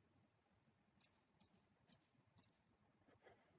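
Dice clatter in quick clicks as they are rolled.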